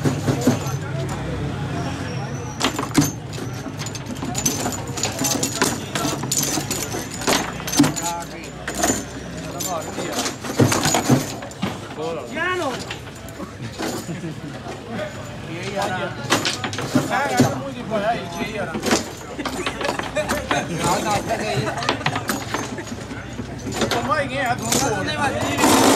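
Foosball rods rattle as they spin.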